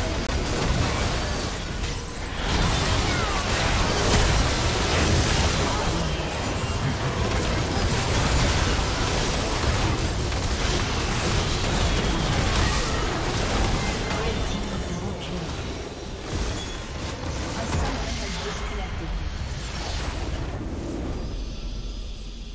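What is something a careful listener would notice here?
Spell blasts and clashing effects crash in a busy game battle.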